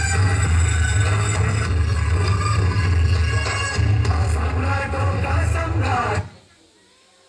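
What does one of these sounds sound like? Music plays loudly through loudspeakers, then stops suddenly.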